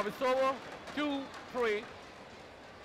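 A large crowd cheers and shouts loudly in a big echoing hall.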